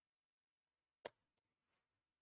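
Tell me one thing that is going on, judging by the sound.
A laptop case is set down with a knock.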